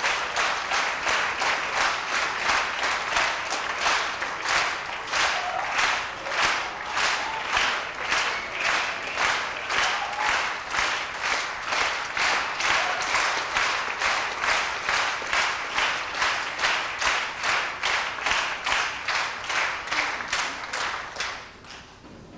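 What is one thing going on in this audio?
A crowd claps steadily in rhythm in a large echoing hall.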